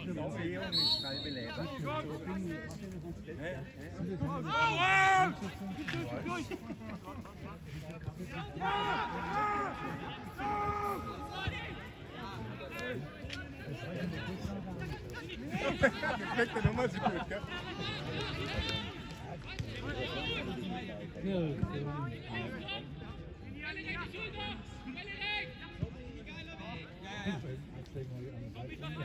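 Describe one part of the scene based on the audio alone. A crowd of spectators murmurs in the distance.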